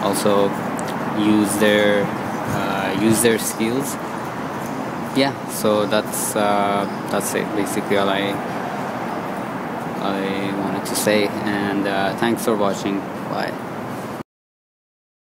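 A young man talks close to a phone microphone.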